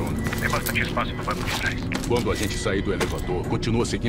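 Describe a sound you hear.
A second man answers calmly.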